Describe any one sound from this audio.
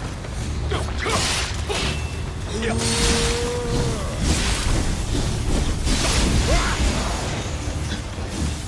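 Heavy blades swing and whoosh through the air.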